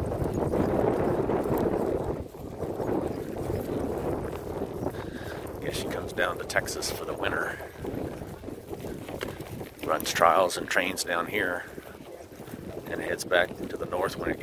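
Horse hooves thud on grass as a horse trots past nearby.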